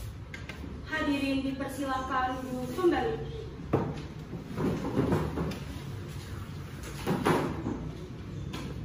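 A young woman speaks calmly nearby in a slightly echoing room.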